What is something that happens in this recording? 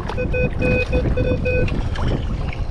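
A metal detector beeps in short repeated tones.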